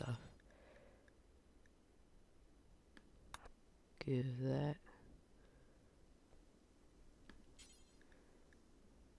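Soft interface clicks sound as menu options are chosen.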